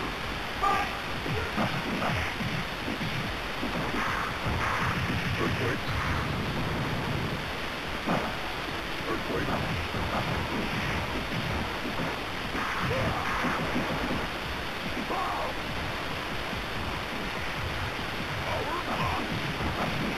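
Punches and hits land with sharp thuds in a fighting game.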